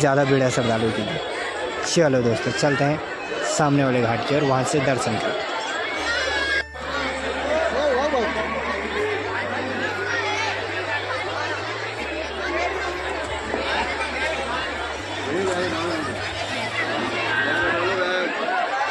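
A crowd of people chatters loudly outdoors.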